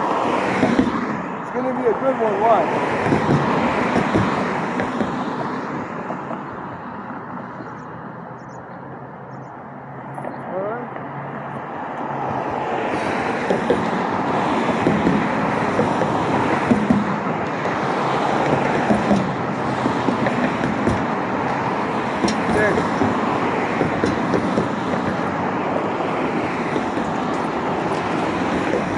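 Cars drive past on a nearby road.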